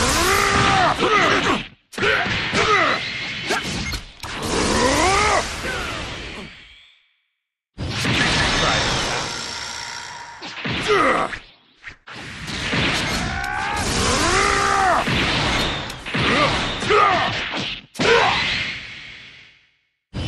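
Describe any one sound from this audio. Punches and energy blasts crash and thud in rapid bursts.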